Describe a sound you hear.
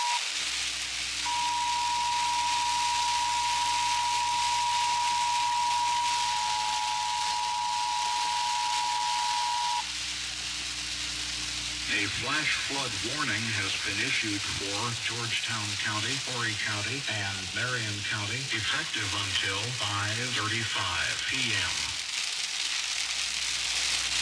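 Rain patters steadily on a car windshield.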